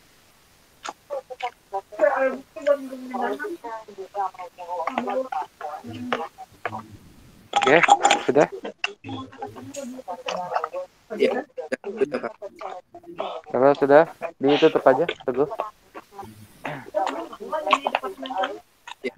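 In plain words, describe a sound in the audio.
A man talks steadily over an online call.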